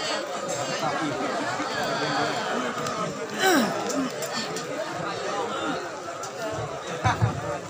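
A young man recites in a melodic chanting voice through a microphone, with loudspeaker echo.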